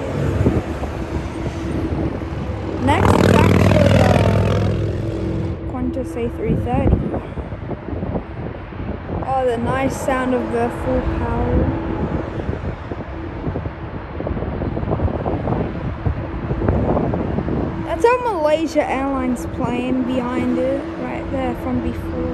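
A jet airliner's engines roar steadily as it taxis nearby.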